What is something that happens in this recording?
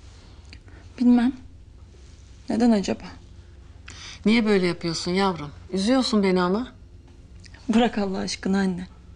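A young woman speaks quietly and seriously, close by.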